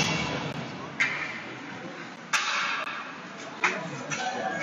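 Hockey sticks clack against a puck on ice.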